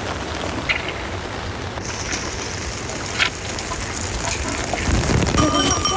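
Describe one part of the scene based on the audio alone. A buffalo slurps water noisily from a pot.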